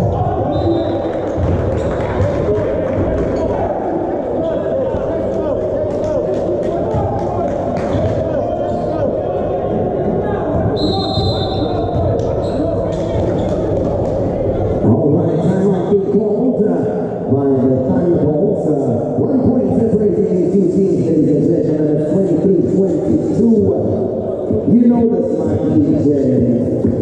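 Men call and shout to each other in a large echoing hall.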